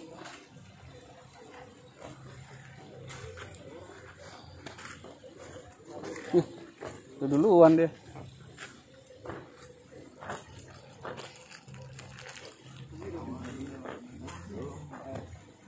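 Footsteps scuff along a path.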